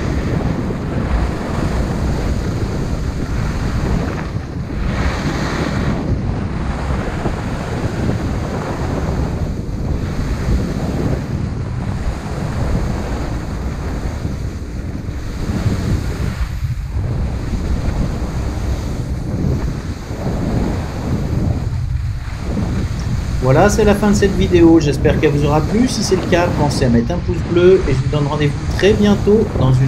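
Wind buffets loudly past a fast-moving skier.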